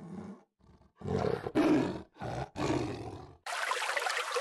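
A tiger roars loudly.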